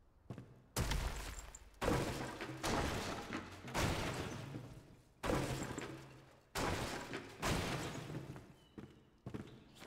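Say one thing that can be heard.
Heavy wooden blocks thud into place with a rumbling crash.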